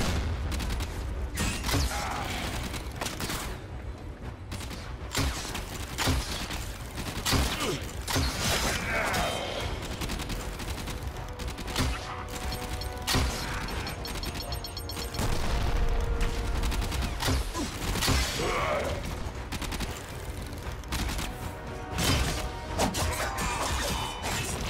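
A bow twangs as arrows are loosed in quick shots.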